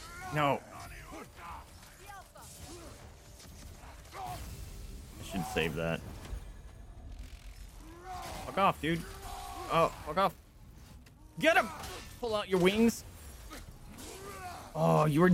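Weapons clash and thud in a game fight.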